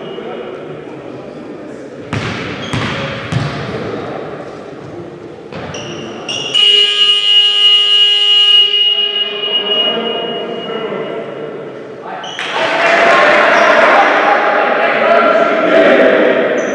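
A man talks urgently to a group of players in a large echoing hall.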